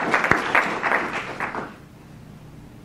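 An audience claps and laughs in a room.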